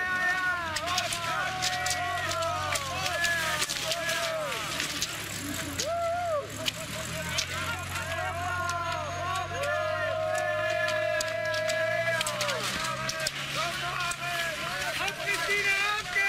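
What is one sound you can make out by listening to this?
Ski poles click against hard snow.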